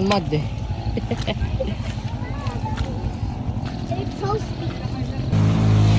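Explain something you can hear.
Footsteps squelch on wet mud.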